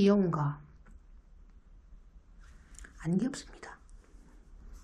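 A young woman speaks close to a microphone in short bursts.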